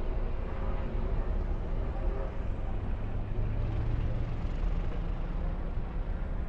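Race car engines roar loudly as a pack of cars speeds around a track.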